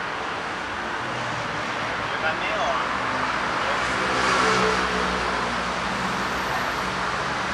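A scooter engine putters past close by.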